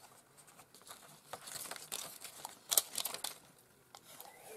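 Sticky tape crackles as it is pulled off a roll.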